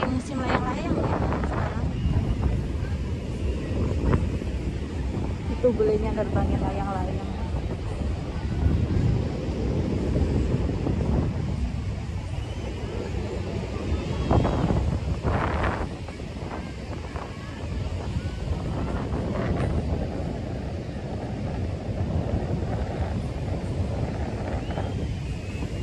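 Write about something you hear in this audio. Waves break and wash onto the shore in a steady roar.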